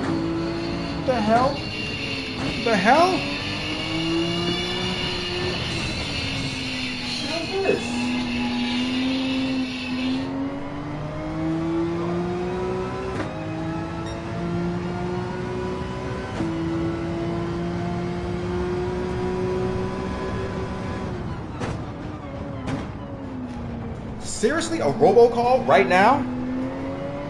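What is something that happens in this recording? Tyres squeal through the corners.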